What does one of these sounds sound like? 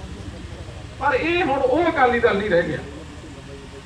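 An elderly man speaks calmly into microphones.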